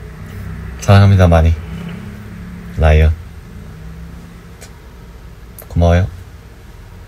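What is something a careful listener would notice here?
A young man speaks in short, lively bursts over an online call.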